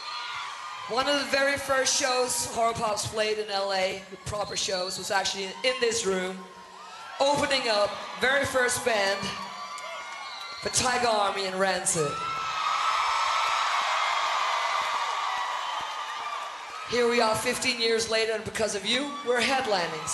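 A woman sings loudly through loudspeakers in a large hall.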